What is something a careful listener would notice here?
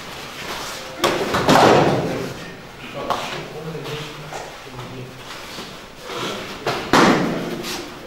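Bodies thump onto a padded mat as people are thrown.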